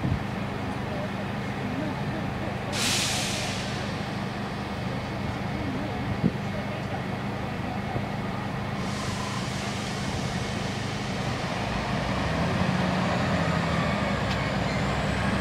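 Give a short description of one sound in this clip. A diesel train engine idles with a steady low rumble.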